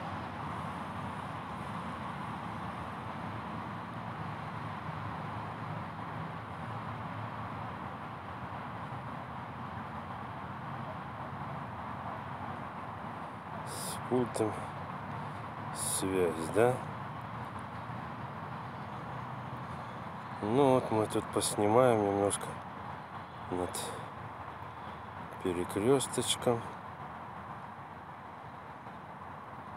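Road traffic rumbles steadily from far below.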